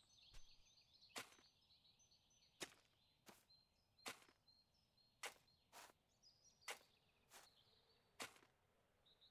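A hoe strikes soft soil in short, regular knocks.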